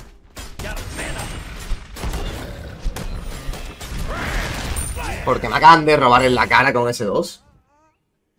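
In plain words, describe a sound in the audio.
Game effects crackle and whoosh.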